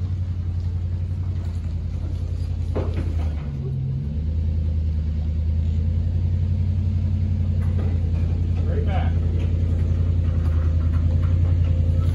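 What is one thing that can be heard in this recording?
An engine idles with a steady, throbbing rumble.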